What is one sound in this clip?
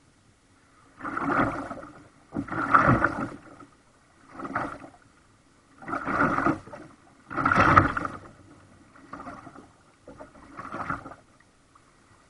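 A kayak paddle dips and splashes in calm water with each stroke.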